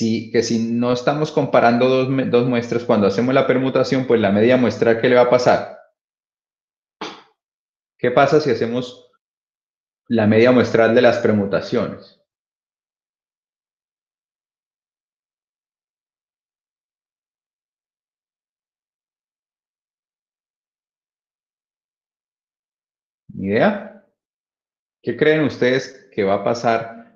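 A young man speaks calmly over an online call, pausing now and then.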